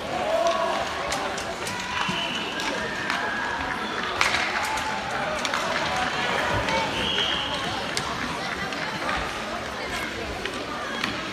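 Children shout and call out in a large echoing arena.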